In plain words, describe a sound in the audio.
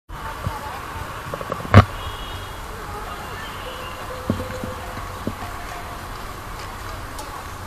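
A crowd of people chatters outdoors in the distance.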